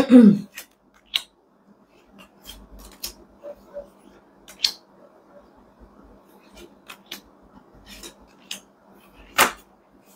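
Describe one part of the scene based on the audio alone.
Cards are shuffled in the hands.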